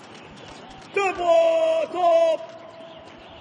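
A man shouts a sharp drill command outdoors.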